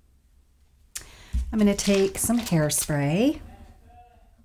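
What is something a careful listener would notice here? A middle-aged woman speaks calmly, close to a microphone.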